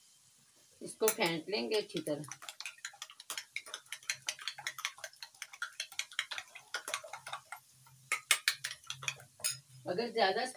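A fork beats eggs briskly in a ceramic bowl, clinking against its sides.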